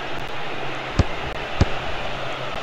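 A ball is kicked with a sharp thud.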